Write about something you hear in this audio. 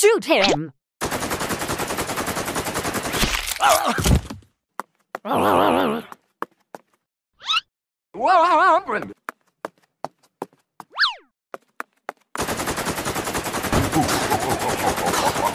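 A pistol fires rapid shots.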